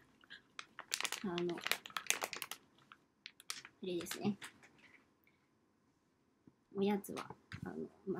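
A plastic bag crinkles and rustles in a woman's hands.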